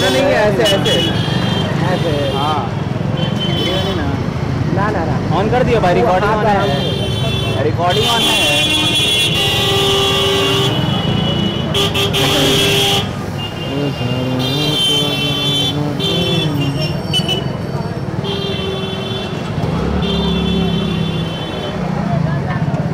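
Street traffic hums in the background outdoors.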